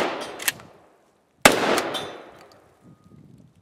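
Shotgun blasts boom loudly outdoors and echo away.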